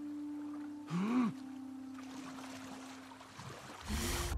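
Water splashes as a swimmer paddles.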